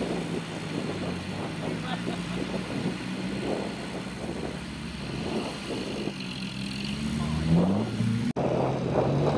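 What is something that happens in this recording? A car engine idles and then revs hard.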